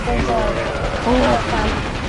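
Gunfire bursts out in quick shots.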